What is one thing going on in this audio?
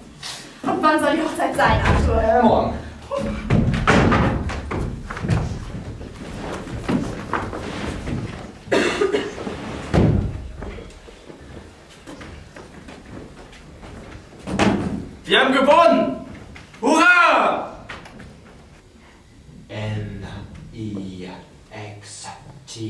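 A man shouts with animation in a small room.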